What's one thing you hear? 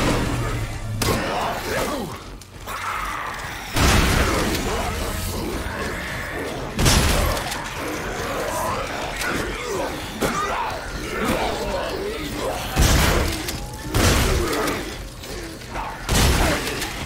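Creatures snarl and growl.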